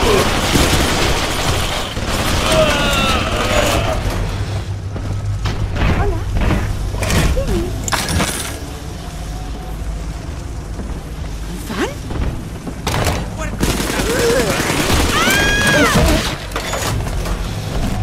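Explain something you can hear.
A gun fires sharp, loud shots.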